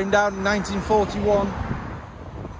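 A man talks close to the microphone.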